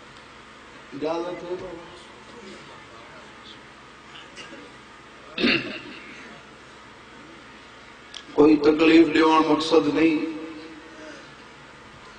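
A young man chants with emotion into a microphone, heard through a loudspeaker with echo.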